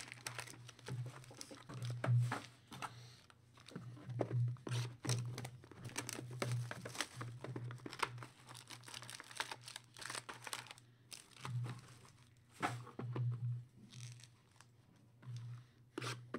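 Cardboard boxes tap and scrape on a table.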